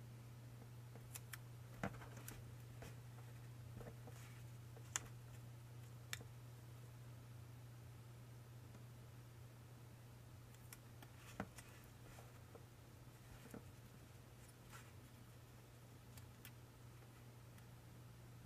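Metal pliers click and crease paper.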